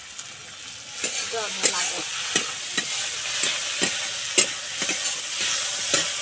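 Food sizzles in hot oil in a pan.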